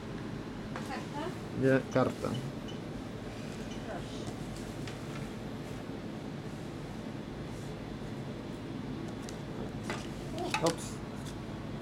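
A woman speaks briefly and calmly nearby.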